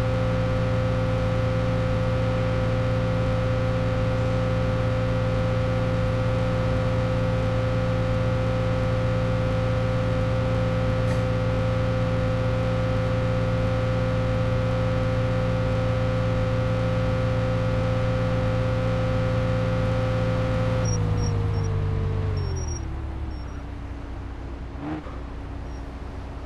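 A car engine hums steadily at a high pitch, then slows and drops lower.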